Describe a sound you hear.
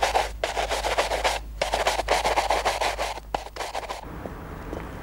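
Cloth rustles and rubs loudly up close.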